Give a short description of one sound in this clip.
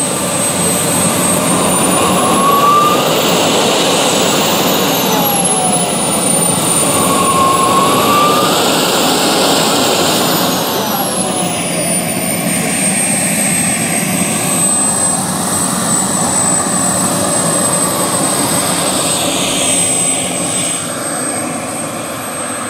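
A model jet turbine whines loudly, rising and falling in pitch.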